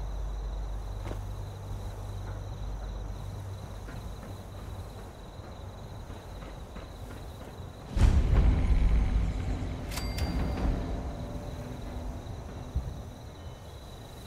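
Footsteps thud and creak on wooden boards.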